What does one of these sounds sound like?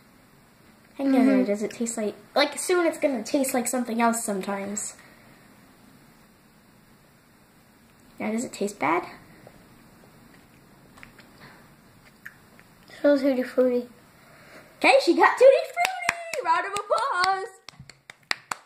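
A young girl talks close by, in short bursts with pauses.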